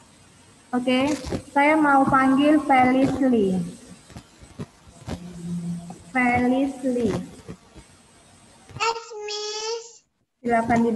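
A young girl speaks through an online call.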